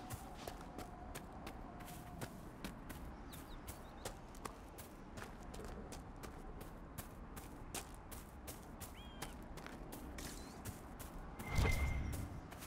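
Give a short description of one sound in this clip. Footsteps crunch quickly through grass and brush.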